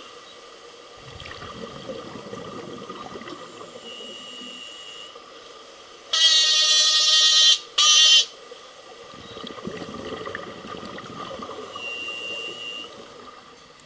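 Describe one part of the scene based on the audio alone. Scuba divers' air bubbles gurgle and rumble underwater.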